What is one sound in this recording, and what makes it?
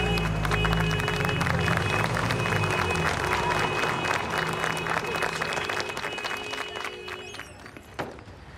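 A group of elderly people clap their hands.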